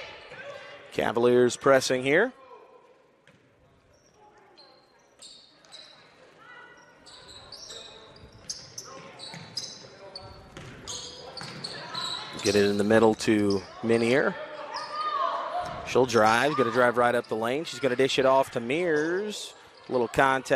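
People in a crowd shout loudly in an echoing gym.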